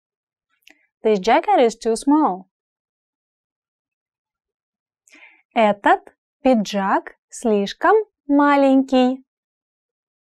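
A young woman speaks slowly and clearly into a close microphone.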